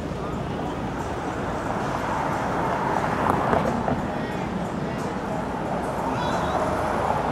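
A car drives by close and grows louder.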